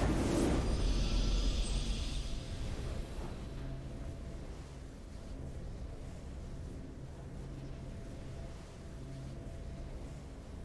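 A triumphant fanfare plays softly and steadily.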